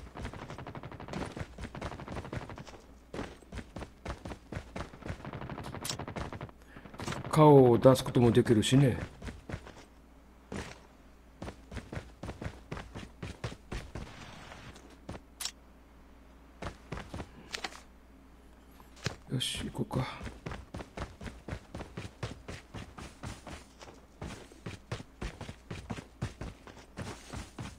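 Quick footsteps patter steadily on hard ground and grass.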